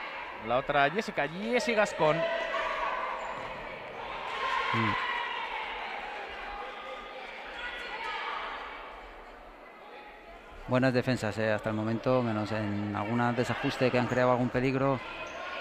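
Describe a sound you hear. Voices murmur and call out, echoing in a large indoor hall.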